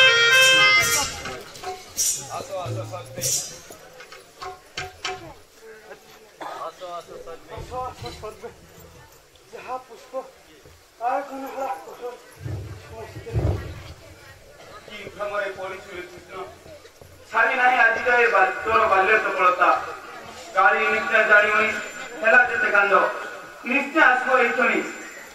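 A man speaks loudly and dramatically through a loudspeaker.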